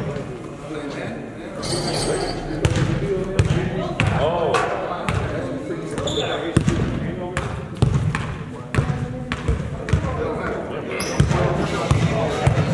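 Young men talk and call out across an echoing hall.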